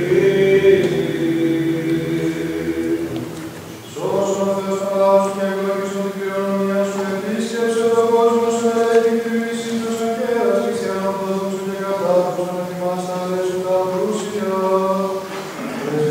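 A choir of men chants slowly in a large echoing hall.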